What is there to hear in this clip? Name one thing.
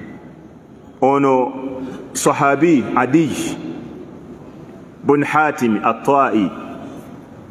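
A man speaks slowly and calmly into a microphone.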